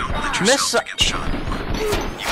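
A gun fires with a sharp crack.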